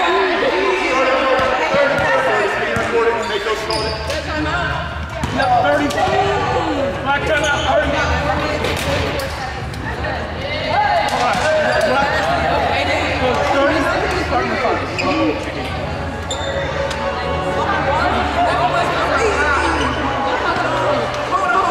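Many voices chatter and call out throughout a large echoing gym.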